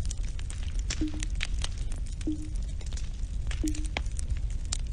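Short soft electronic blips sound one after another.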